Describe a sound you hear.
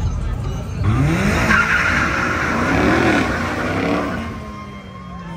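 A car engine revs loudly as it speeds past close by.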